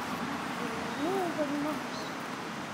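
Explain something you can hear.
A child calls out briefly nearby.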